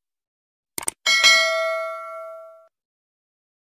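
A bright notification chime rings and fades.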